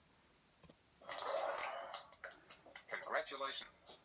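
A handheld game plays bright sound effects and music through its small speaker.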